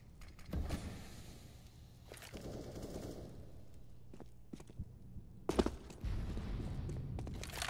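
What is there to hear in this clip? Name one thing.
Footsteps scuff on hard ground.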